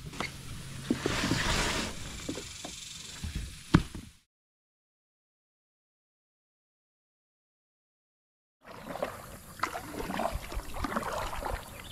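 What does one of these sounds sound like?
Water laps against a kayak.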